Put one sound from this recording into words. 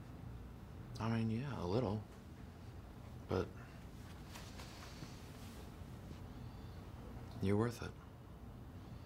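A man speaks quietly and calmly up close.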